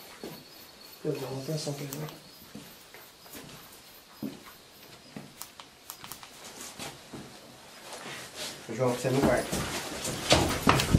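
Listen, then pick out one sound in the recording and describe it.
A middle-aged man speaks in a low voice close by.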